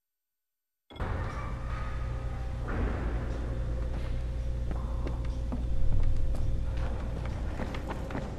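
Footsteps tread across a wooden floor.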